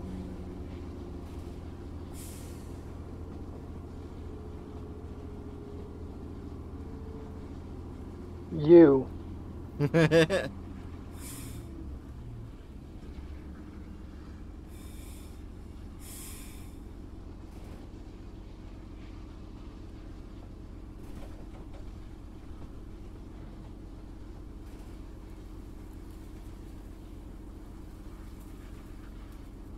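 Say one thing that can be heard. An engine rumbles steadily at low pitch.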